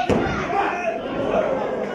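A body slams onto a wrestling mat with a loud thud.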